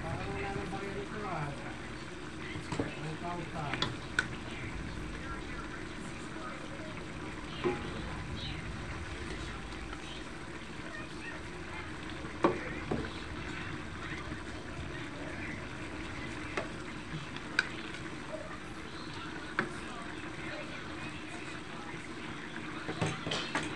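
A wooden spoon and a fork scrape and clink against a metal wok while stirring.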